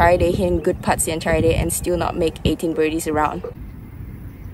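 A young woman talks cheerfully, close up.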